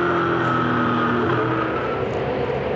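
Race car engines roar past on a track.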